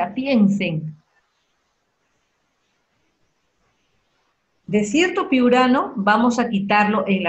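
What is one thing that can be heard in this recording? A woman speaks calmly over an online call, pausing briefly between phrases.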